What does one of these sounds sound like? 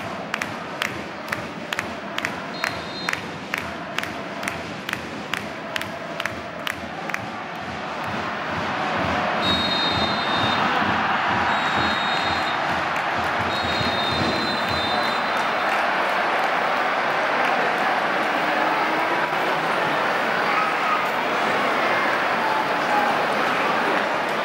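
A large stadium crowd chants and roars, growing louder.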